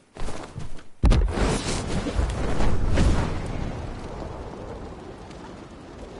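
Wind rushes loudly past during a glide.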